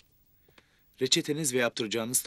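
A man speaks softly nearby.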